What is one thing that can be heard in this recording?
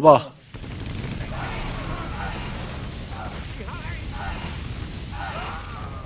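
Fiery blasts rain down and explode in quick succession.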